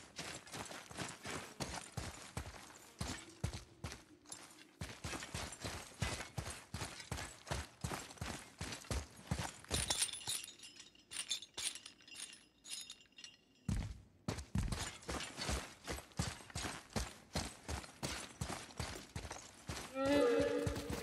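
Heavy footsteps thud on stone at a steady pace.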